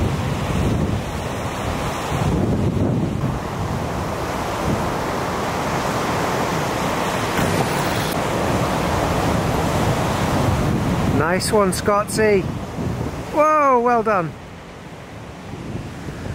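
Waves crash and roar steadily outdoors.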